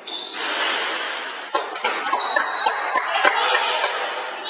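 A basketball bounces on a gym floor.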